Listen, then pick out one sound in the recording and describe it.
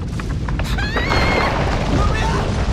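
A girl screams.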